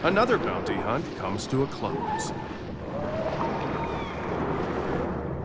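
Water churns and rumbles as a shark swims underwater.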